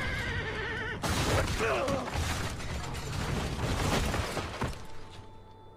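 A wooden cart crashes and breaks apart with a loud rumble.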